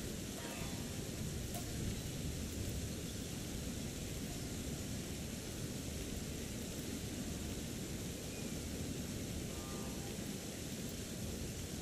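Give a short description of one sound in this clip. Water rushes steadily nearby.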